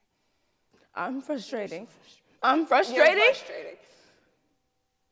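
A young woman answers quietly and firmly.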